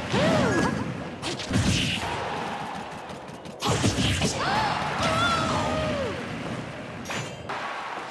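Video game fighters trade punches and kicks with sharp smacking hits.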